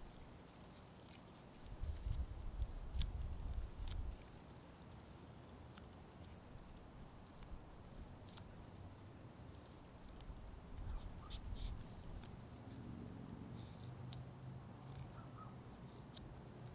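A fingernail scratches and picks at a sticker on a plastic bottle.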